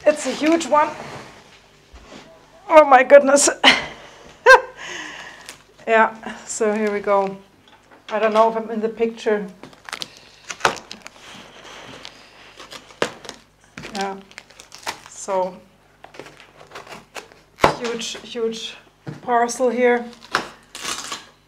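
Plastic wrap crinkles and rustles as a woman tugs at a box.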